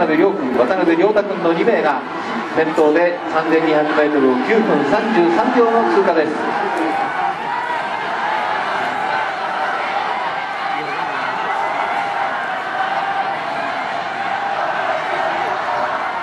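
A crowd of spectators cheers and shouts across an open stadium.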